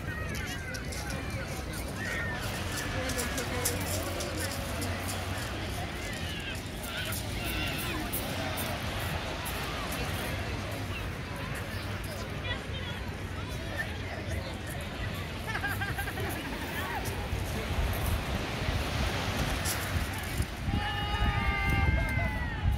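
Small waves wash onto a shingle beach.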